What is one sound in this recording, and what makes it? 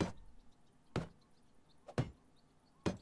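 A hammer knocks on wood in short, sharp blows.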